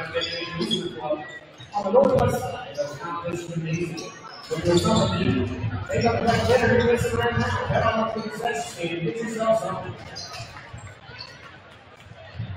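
Basketballs bounce on a hardwood floor in a large echoing gym.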